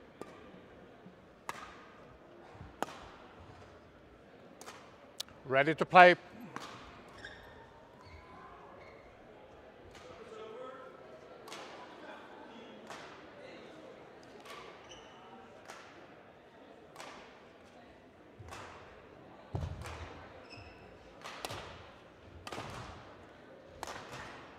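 Rackets strike a shuttlecock in a quick rally, in a large echoing hall.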